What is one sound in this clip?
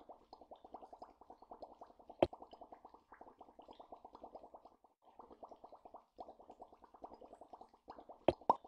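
Small bubbles pop rapidly, one after another.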